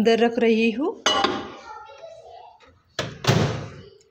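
A microwave door thumps shut.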